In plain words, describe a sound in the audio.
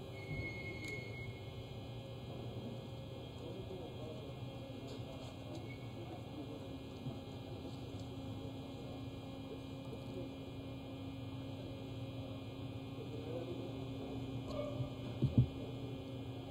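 Vehicle engines idle in the distance.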